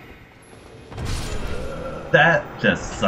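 A sword swings with a sharp whoosh.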